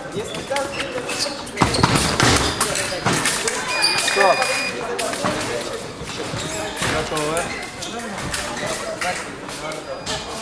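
Fencers' footsteps thud and squeak on the floor in a large echoing hall.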